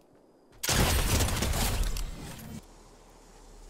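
Gunfire bursts rapidly and loudly.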